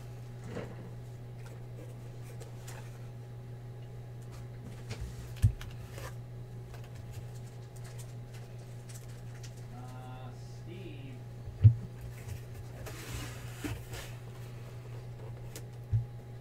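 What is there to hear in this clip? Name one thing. Cardboard boxes and card packs knock and rustle on a table.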